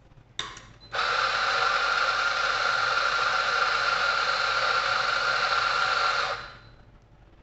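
A coffee machine hisses steadily, then stops.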